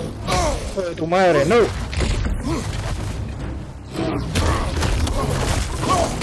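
A bear growls and roars.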